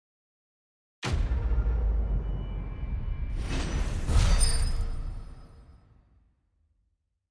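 A short musical fanfare swells up and slowly fades away.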